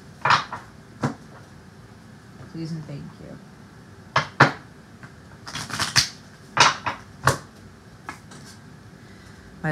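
Cards riffle and slap as they are shuffled and handled.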